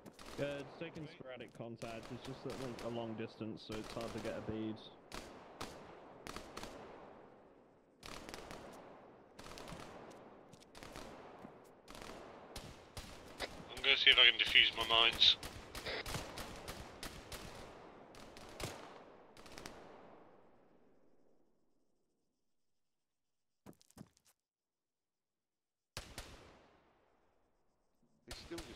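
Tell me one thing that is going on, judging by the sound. Rifle shots crack repeatedly, each echoing off into the distance.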